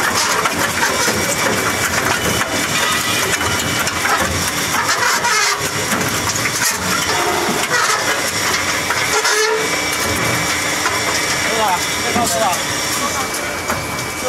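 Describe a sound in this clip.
A screw conveyor churns and rattles wood chips.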